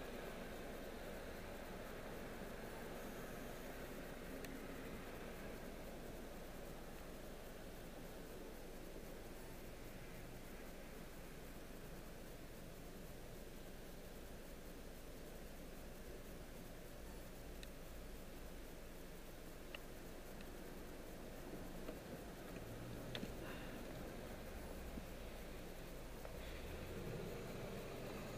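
Traffic passes by outside the car.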